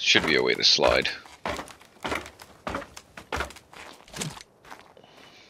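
Footsteps knock on a wooden ladder while climbing.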